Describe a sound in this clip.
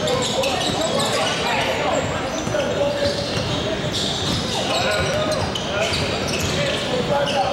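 Young men call out and shout across a large echoing gym.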